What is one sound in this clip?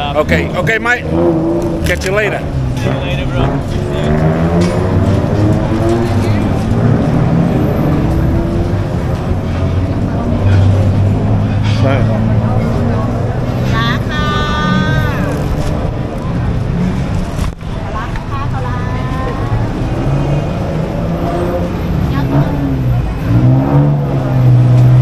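A crowd of people chatters on a busy street.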